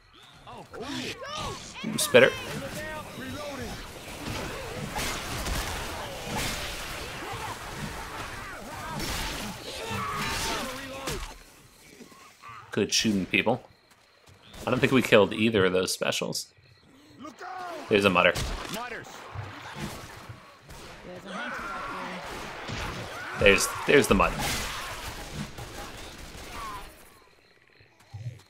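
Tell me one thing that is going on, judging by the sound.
An axe swings and strikes flesh with heavy thuds.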